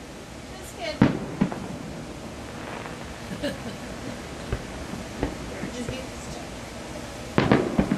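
Firework shells burst with bangs in the distance.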